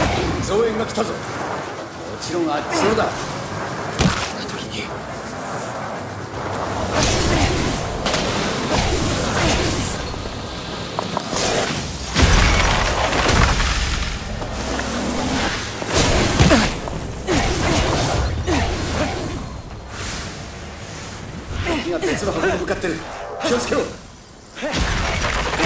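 Magic blasts crackle and burst in quick bursts.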